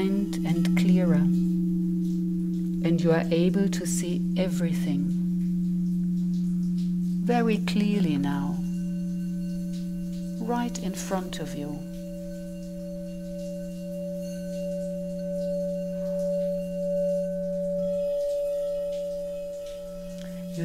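Singing bowls ring with a steady, humming drone.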